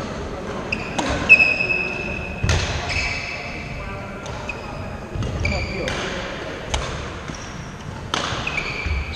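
A shuttlecock is struck with a sharp crack of a racket.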